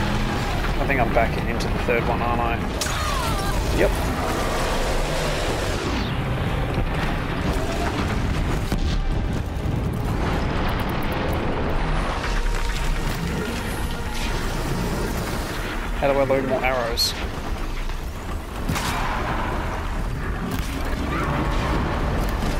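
A machine creature roars and stomps.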